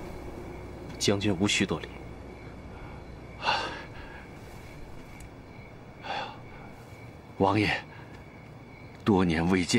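A young man speaks calmly and softly.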